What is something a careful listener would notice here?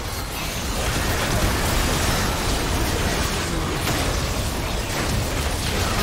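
Magic blasts burst with loud booms.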